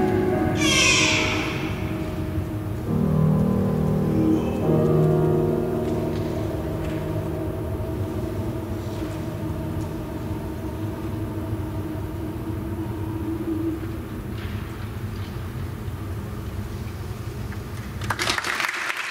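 A man sings through a microphone in an echoing hall.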